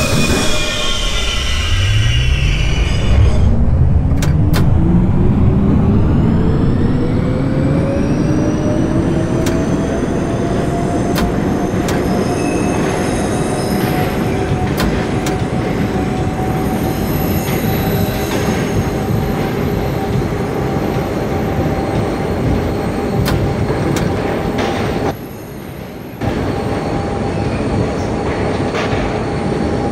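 A train's electric motors whine, rising in pitch as the train speeds up, then holding steady.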